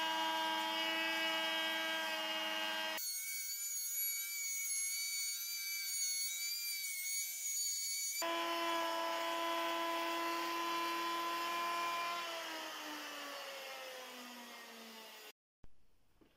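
A wood router whines steadily while cutting, then winds down.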